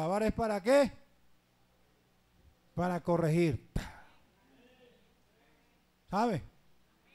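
A man preaches with feeling into a microphone, in bursts, through loudspeakers in an echoing hall.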